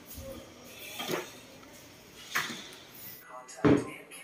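A wooden drawer bumps shut with a dull knock.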